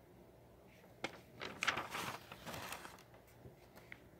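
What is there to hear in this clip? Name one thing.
Paper pages rustle as a notebook is flipped.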